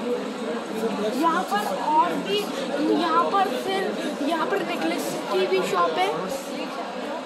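A boy talks close by with animation.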